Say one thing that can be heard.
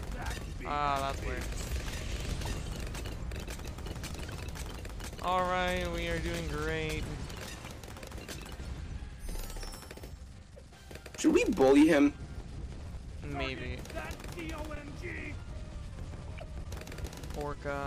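Rapid popping and crackling game effects go off throughout.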